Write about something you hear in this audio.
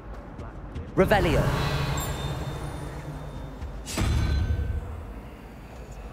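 A magical shimmer swells with a whoosh and a ringing chime.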